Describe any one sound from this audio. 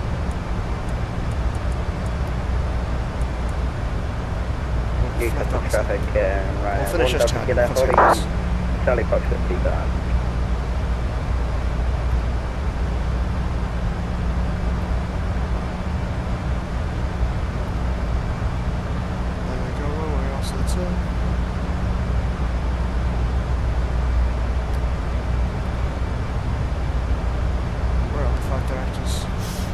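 Jet engines drone steadily in a low, even rumble.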